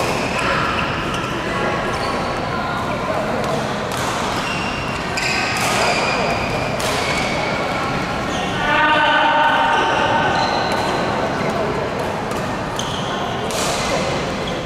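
Rackets smack a shuttlecock back and forth in a large echoing hall.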